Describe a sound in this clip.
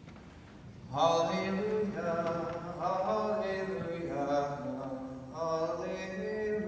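A man chants in song, heard through a microphone in a reverberant hall.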